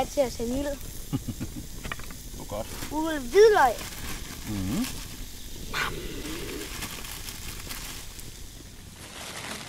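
Food sizzles in a pan over the fire.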